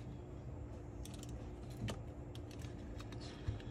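A metal part clicks and knocks as hands handle it.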